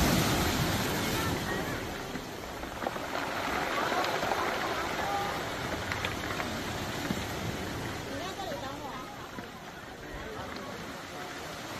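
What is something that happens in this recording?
Pebbles rattle as the water drains back.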